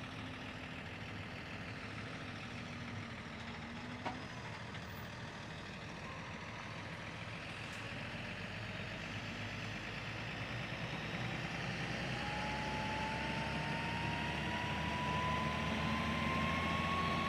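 A tractor engine rumbles steadily nearby and grows louder as it draws closer.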